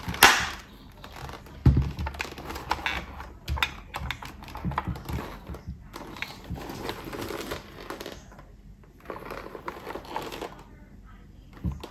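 Hands handle a plastic helmet with light knocks and rubbing.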